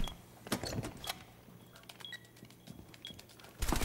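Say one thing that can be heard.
Keys click on a keypad.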